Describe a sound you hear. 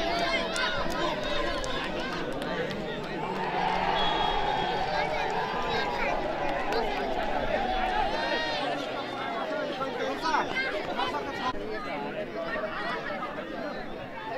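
A crowd of young people cheers and shouts outdoors.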